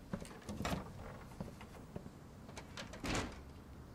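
A glass-paned door opens and shuts.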